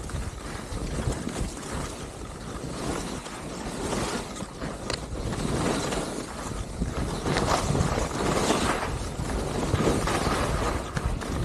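Wind rushes past loudly, outdoors.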